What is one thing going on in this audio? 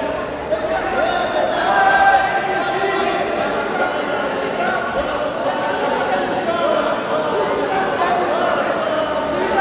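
A crowd of spectators shouts and calls out in a large echoing hall.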